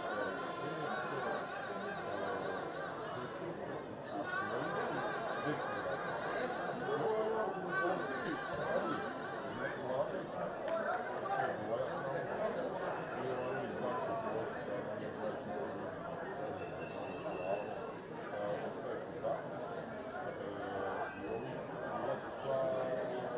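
A crowd chants and sings in a large open stadium.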